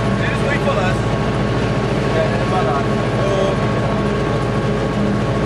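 A train's engine hums steadily.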